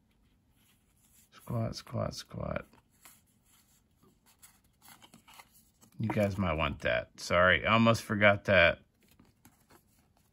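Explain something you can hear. Playing cards rustle and slide against each other in hands.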